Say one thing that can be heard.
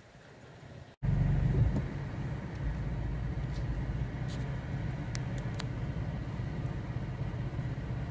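A car engine rumbles steadily, heard from inside the car.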